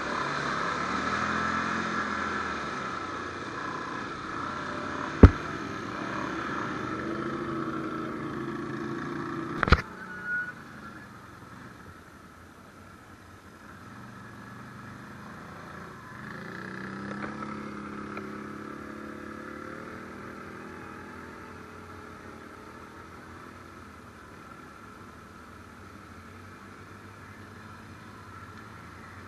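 An ATV engine rumbles and revs up close.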